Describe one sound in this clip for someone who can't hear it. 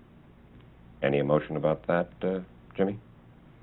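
An older man speaks calmly and close by.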